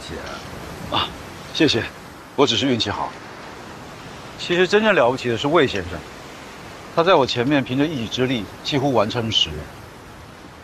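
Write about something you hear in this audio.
A younger man answers calmly nearby.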